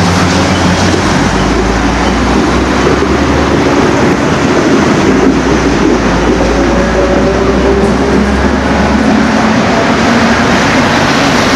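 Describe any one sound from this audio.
A train rumbles steadily along the tracks close by.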